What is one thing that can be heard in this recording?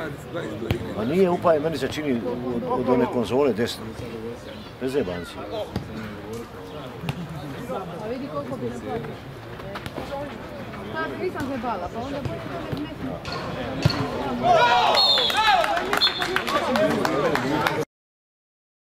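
Men shout and call out to each other.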